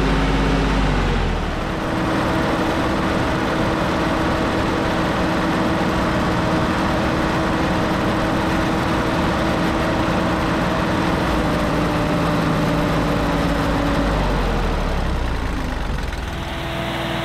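A tractor's diesel engine runs loudly up close.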